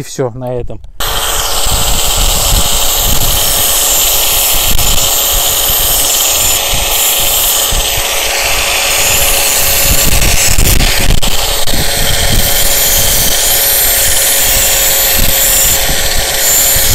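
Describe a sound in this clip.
An angle grinder whirs steadily.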